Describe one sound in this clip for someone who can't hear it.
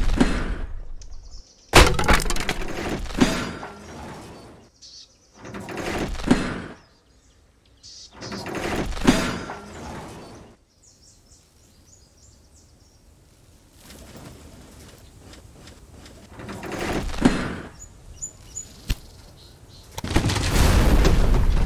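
Demolition crunches and rumbles come in bursts as railway track is torn up.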